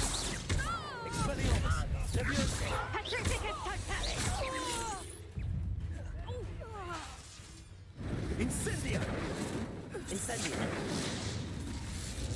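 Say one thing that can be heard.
Magic spells blast and crackle in a video game.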